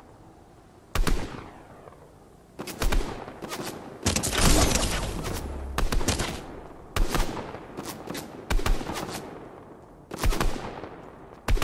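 Rifle shots crack one after another, each followed by a ringing echo.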